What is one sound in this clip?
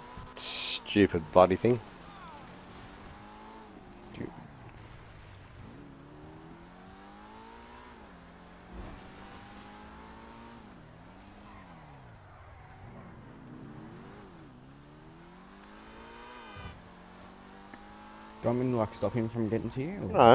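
A sports car engine revs and whines, rising and falling in pitch.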